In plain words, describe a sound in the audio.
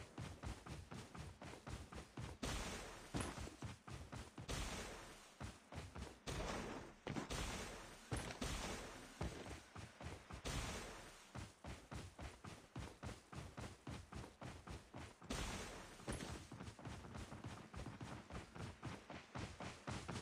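A video game character's footsteps thud while running.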